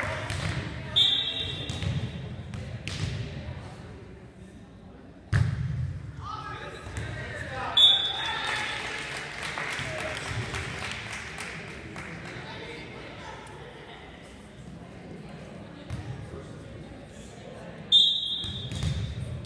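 A referee's whistle blows short, sharp blasts.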